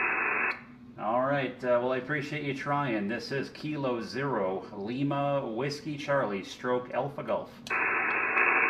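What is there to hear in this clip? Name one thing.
A man speaks calmly into a radio microphone up close.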